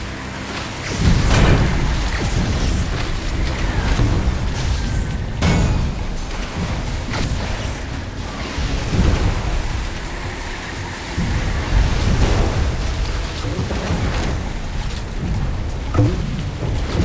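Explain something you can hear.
Explosions boom in bursts as shots hit boats.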